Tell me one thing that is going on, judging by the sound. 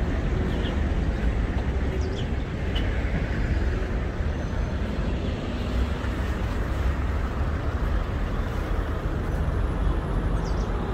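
Traffic rumbles steadily along a nearby road.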